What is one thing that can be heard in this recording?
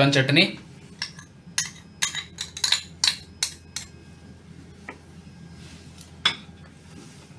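Spoons clink and scrape against a plastic bowl.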